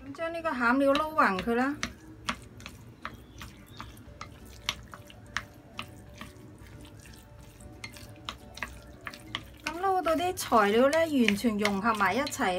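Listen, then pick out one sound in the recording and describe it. A spoon scrapes and clinks against a glass bowl while stirring a thick mixture.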